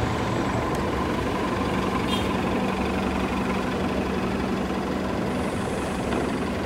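A city bus engine idles with a low, steady hum.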